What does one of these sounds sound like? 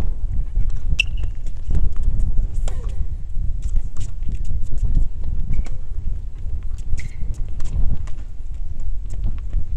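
A tennis ball is struck hard by rackets.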